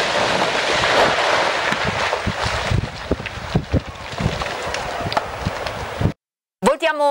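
Rocks tumble and crash down a cliff face with a rumbling roar.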